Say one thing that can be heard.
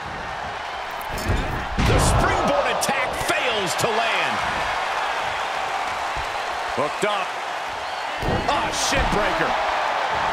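Bodies slam down hard onto a wrestling mat.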